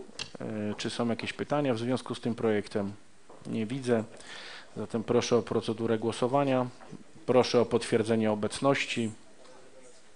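A man speaks steadily into a microphone in a large room, then falls silent.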